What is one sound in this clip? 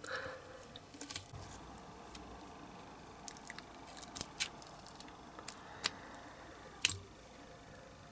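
A rubber mould flexes and peels apart with soft squeaks.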